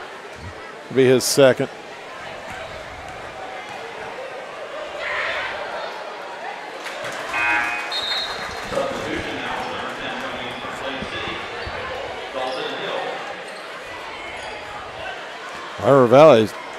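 A referee blows a whistle sharply.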